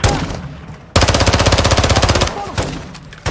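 A submachine gun fires a rapid, loud burst.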